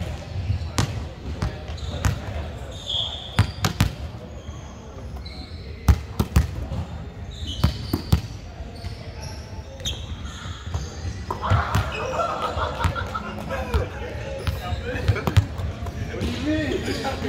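Volleyballs thud and bounce on a hard floor in a large echoing hall.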